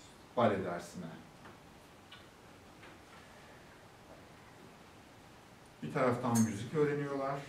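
A man speaks calmly to an audience, a little way off.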